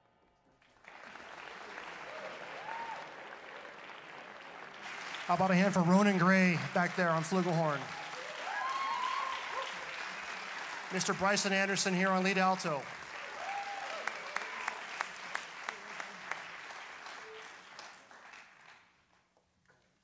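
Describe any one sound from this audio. A jazz big band plays, with saxophones holding bright, wavering notes in a large hall.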